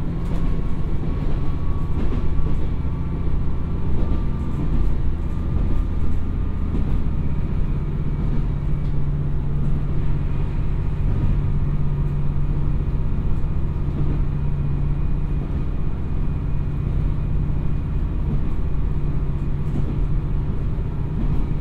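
A diesel train engine rumbles steadily.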